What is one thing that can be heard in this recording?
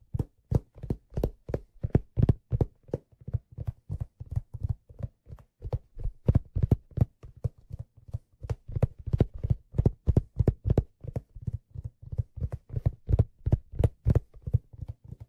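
Fingers tap and rub on a hat, very close to a microphone, in a quick, uneven rhythm.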